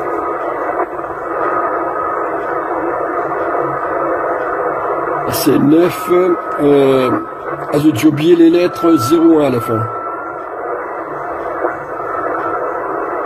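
Static hisses from a CB radio receiver speaker.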